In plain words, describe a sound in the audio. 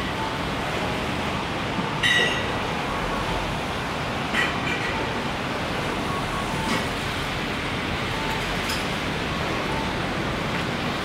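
Footsteps walk steadily along a pavement.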